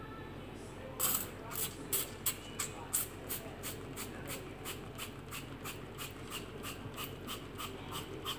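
A spray bottle hisses in quick, repeated bursts.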